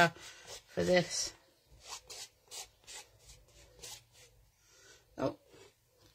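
A palette knife scrapes softly across paper.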